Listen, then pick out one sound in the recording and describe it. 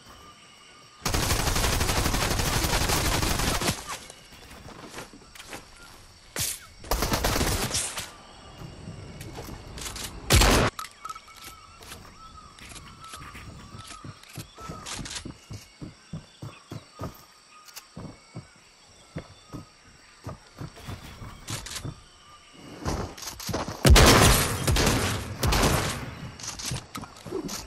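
Wooden walls and ramps snap into place with quick clunks.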